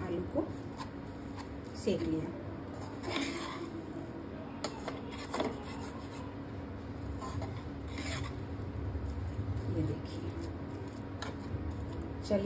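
Food sizzles softly in a pan.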